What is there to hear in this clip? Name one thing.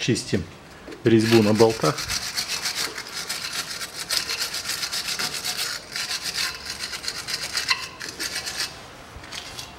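A wire brush scrubs rapidly back and forth against metal.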